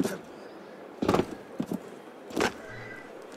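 A person lands with a heavy thump.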